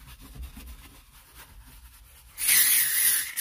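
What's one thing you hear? A brush scrubs a foamy surface.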